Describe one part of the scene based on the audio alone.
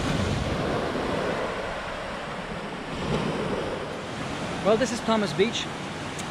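Small waves wash softly onto a shore.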